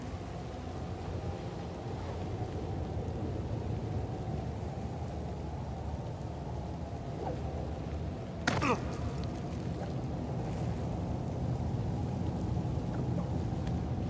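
A rope creaks as a climber swings on it.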